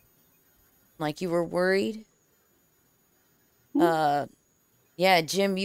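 A man speaks with animation over an online call, in short bursts.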